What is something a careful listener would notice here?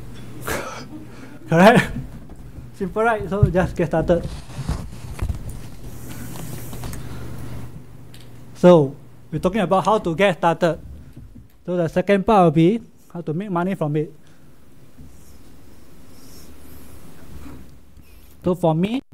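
A man speaks into a microphone, addressing an audience.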